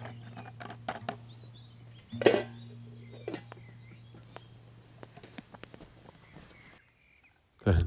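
Metal gear clinks and clatters softly.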